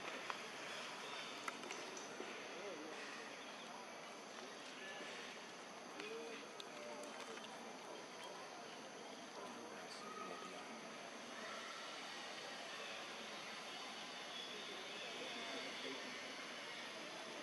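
A young monkey gnaws and chews on corn.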